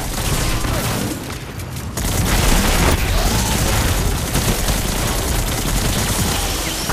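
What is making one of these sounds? Gunfire and energy blasts crackle and boom in a video game.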